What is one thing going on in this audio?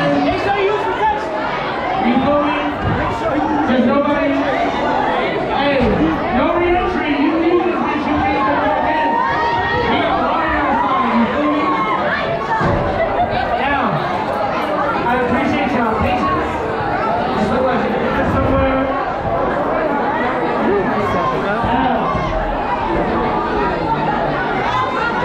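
Dance music plays loudly through speakers.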